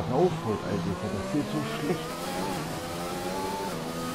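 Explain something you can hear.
A racing car engine climbs in pitch as the car speeds up again.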